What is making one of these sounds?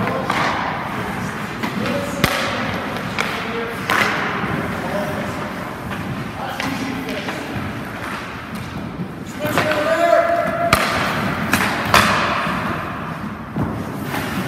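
Ice skates scrape across ice in an echoing rink.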